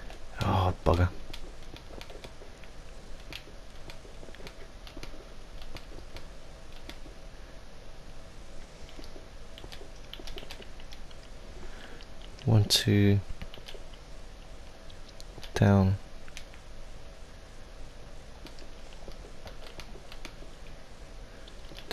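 Stone blocks crack and crumble as they are broken, one after another.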